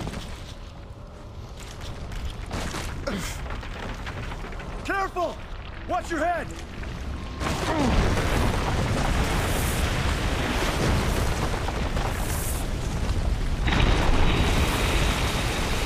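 A large fire roars and rumbles steadily.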